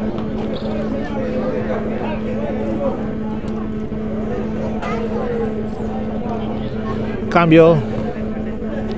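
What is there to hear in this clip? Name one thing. A crowd of spectators chatters outdoors at a distance.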